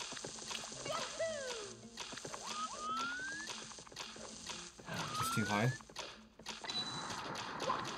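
Quick footsteps patter as a cartoon character runs.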